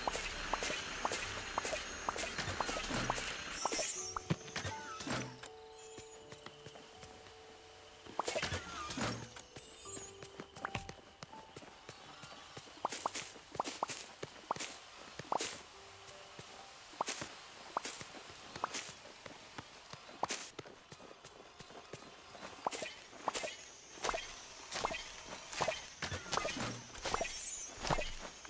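A bright sparkling chime rings out as plants are gathered.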